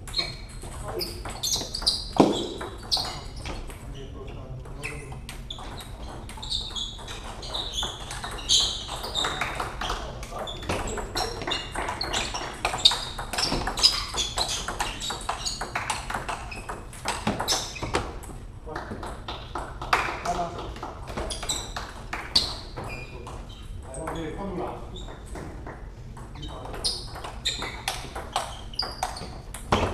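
A ping-pong ball clicks back and forth between paddles and table in a large echoing hall.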